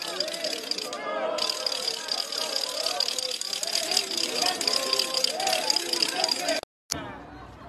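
A crowd of men and women shouts and cheers loudly outdoors.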